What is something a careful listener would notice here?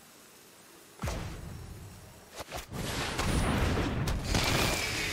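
A game sound effect swooshes and chimes as a card is played.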